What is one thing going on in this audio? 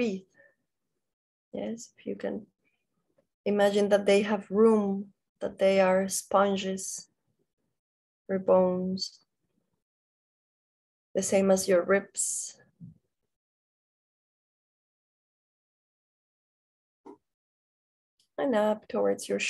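A young woman speaks calmly over an online call, with pauses.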